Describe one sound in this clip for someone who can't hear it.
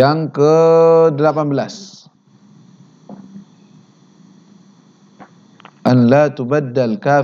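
A man chants aloud in a melodic voice through a microphone, with pauses between phrases.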